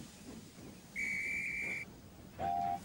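A steam engine whistle blows loudly.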